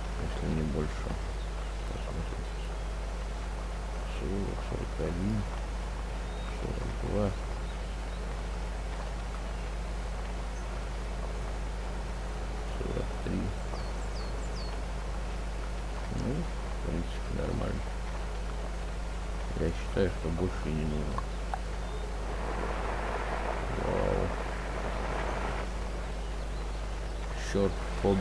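An engine hums steadily as a vehicle drives along.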